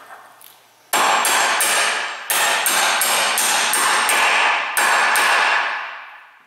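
A hammer strikes a metal part rapidly with ringing clangs.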